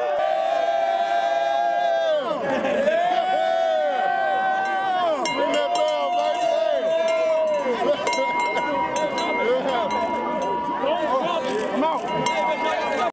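A crowd of young men cheer and shout loudly, close by.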